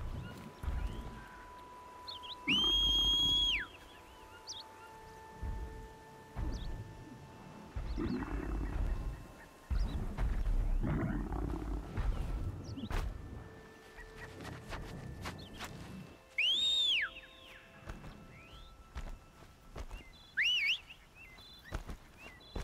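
Footsteps thud on dirt and rock.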